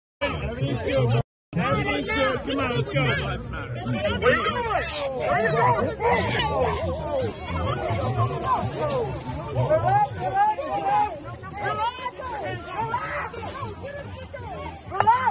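A crowd of men and women shout and talk over one another outdoors.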